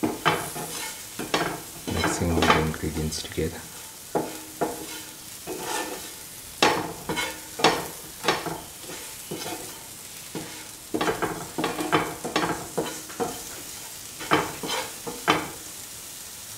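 A spatula scrapes and knocks against a non-stick pan while stirring sliced peppers and onions.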